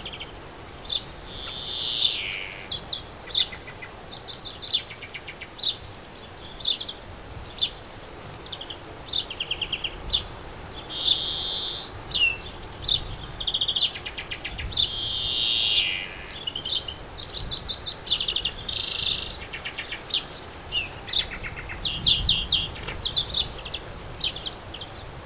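Small birds chirp and twitter busily, close by, outdoors.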